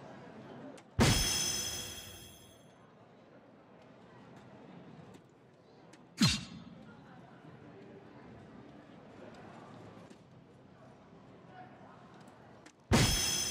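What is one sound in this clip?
Darts thud sharply into an electronic dartboard, several times.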